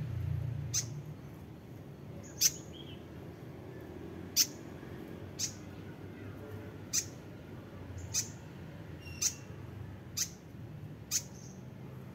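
Baby birds give short, high chirps about once a second.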